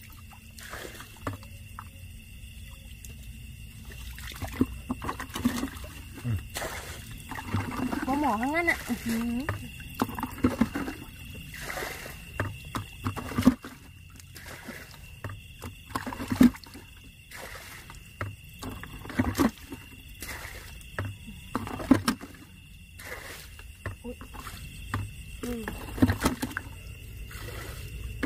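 Hands squelch and splash in wet mud and shallow muddy water.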